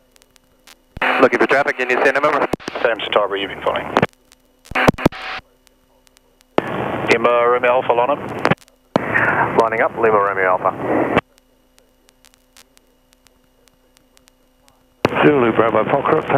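A young man speaks calmly through a headset microphone, in short bursts.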